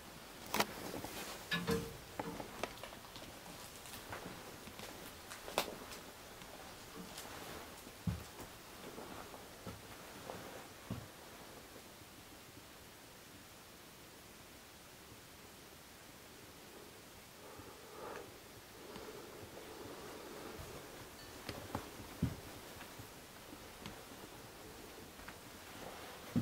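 A young man speaks quietly close to a microphone.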